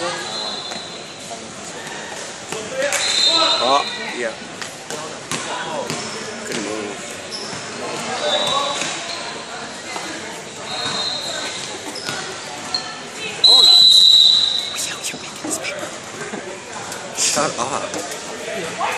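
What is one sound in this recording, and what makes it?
Girls shout and call out to each other in a large echoing gym.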